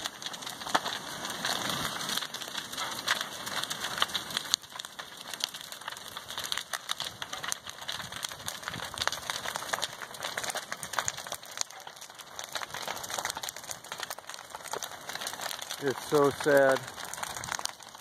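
A fire roars and crackles as flames consume a building.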